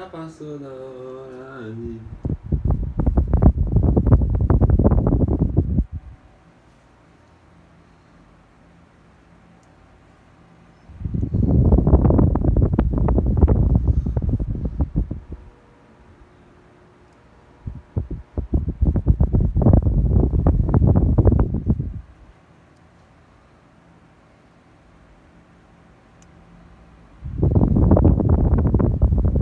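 An oscillating electric fan whirs.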